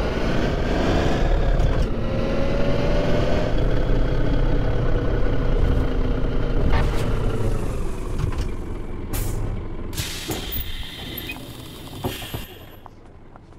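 A bus engine hums steadily and slowly winds down as the bus pulls up.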